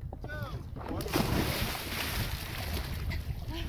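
A young woman splashes into the water.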